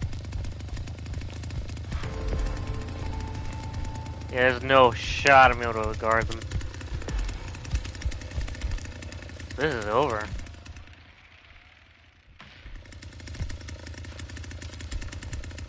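A chainsaw engine idles with a low, rough rumble.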